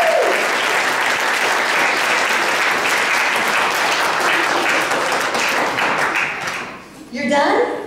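A crowd claps in a large echoing hall.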